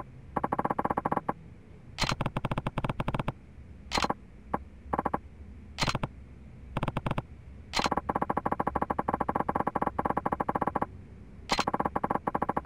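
Rapid electronic beeps tick in quick bursts.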